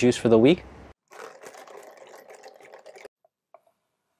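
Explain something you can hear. Liquid pours into a cup.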